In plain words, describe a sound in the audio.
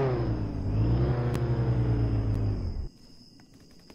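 A car engine hums steadily, then cuts off.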